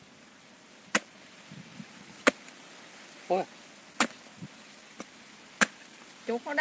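A heavy knife chops into a tough fruit with sharp knocks.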